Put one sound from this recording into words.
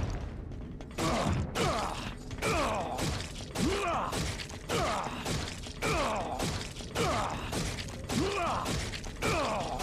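A monster shrieks and growls again and again.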